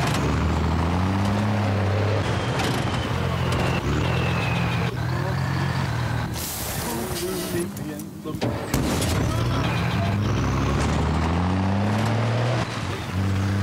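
A truck engine drones steadily and revs as it drives.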